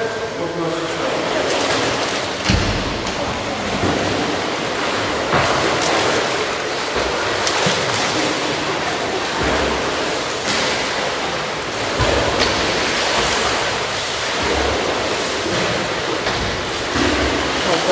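Water laps and splashes close by in a large echoing hall.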